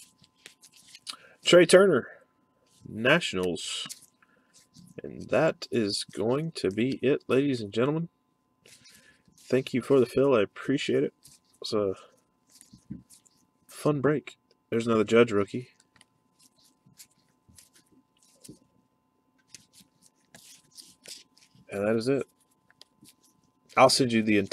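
Trading cards rustle and slide against each other as they are shuffled by hand.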